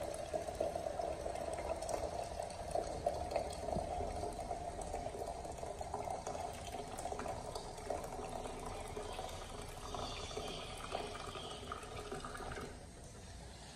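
Water streams into a plastic bottle, the gurgle rising in pitch as it fills.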